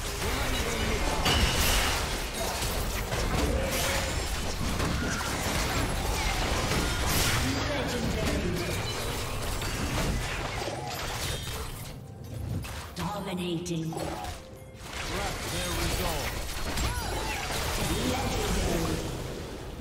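Magic spells blast and crackle in a fast video game battle.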